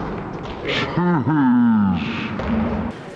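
A man cries out loudly.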